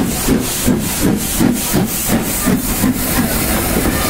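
A steam locomotive chuffs rhythmically as it pulls away.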